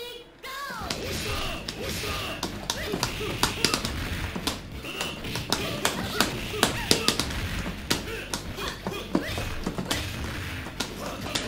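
Punches and kicks land with sharp smacking hits.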